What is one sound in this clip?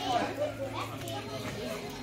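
Several people chat outdoors nearby.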